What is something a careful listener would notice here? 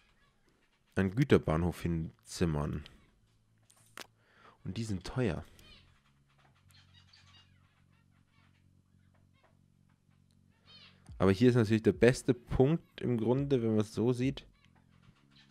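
A young man talks with animation into a close microphone.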